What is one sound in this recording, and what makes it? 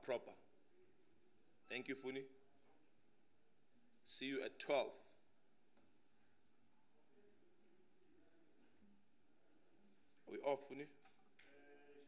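A young man speaks calmly into a microphone, reading out in short bursts with pauses.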